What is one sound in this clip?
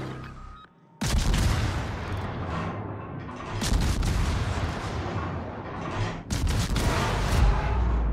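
Heavy naval guns fire in loud, rumbling booms.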